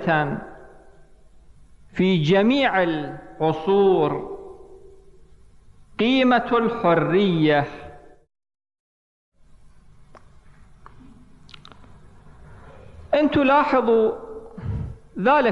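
A man speaks slowly and with feeling into a microphone, in an echoing room.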